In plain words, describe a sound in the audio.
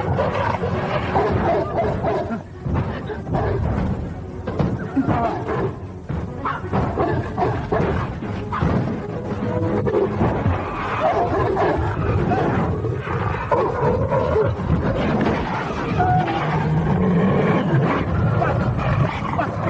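A dog snarls and barks fiercely.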